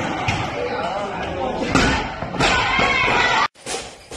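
A loaded barbell crashes down onto a wooden floor.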